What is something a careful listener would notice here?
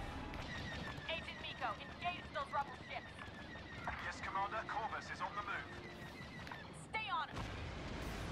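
Laser cannons fire in quick zapping bursts.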